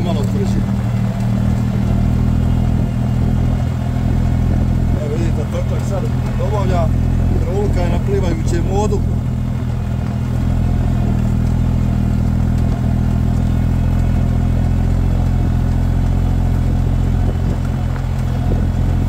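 A tractor engine hums steadily and loudly up close.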